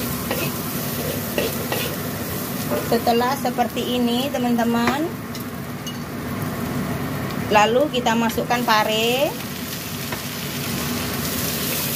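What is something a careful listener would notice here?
Food sizzles steadily in hot oil.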